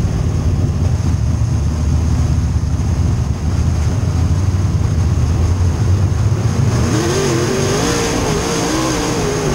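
A race car engine roars loudly from inside the car, its pitch rising and falling.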